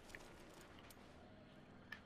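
Footsteps fall on sand.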